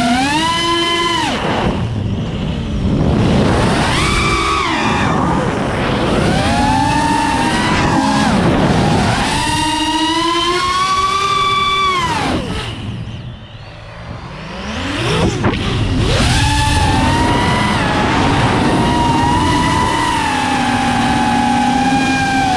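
A small drone's motors whine loudly, rising and falling in pitch as the drone speeds up and slows down.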